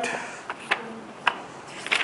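Paper pages rustle as a book's pages are turned.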